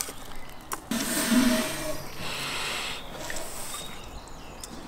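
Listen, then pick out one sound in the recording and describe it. A man blows hard into something, puffing air.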